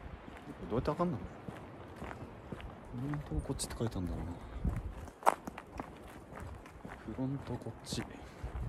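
A young man speaks calmly and close by, in short phrases.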